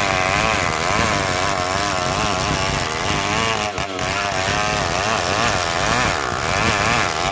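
A chainsaw under load rips lengthwise through a log.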